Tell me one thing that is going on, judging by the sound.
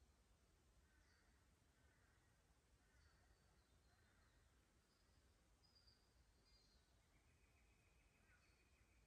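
A shallow creek trickles gently over stones.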